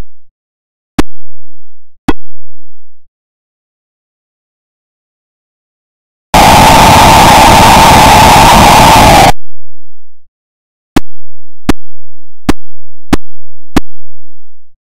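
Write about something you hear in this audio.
A basketball bounces on the floor in short, sharp electronic blips.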